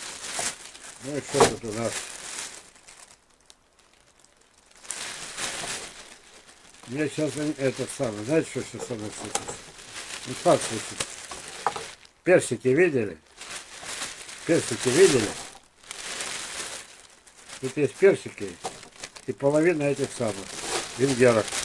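An elderly man speaks calmly close by.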